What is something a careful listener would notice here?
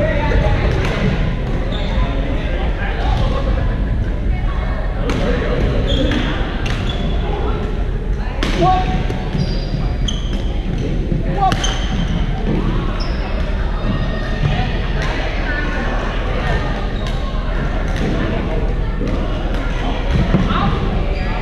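Shoes squeak on a gym floor.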